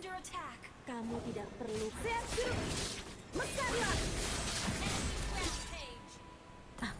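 A young man speaks excitedly close to a microphone.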